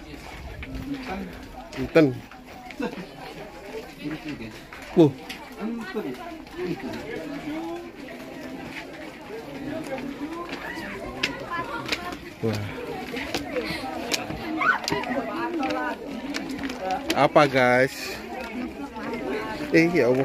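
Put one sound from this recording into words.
A crowd of men and women chatter nearby.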